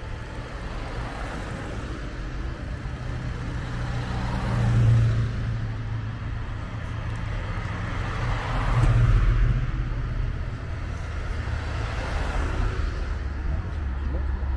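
Classic cars drive past one after another.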